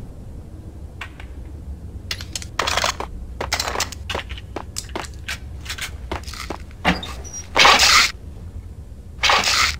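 Footsteps tap on a hard tiled floor in an echoing hall.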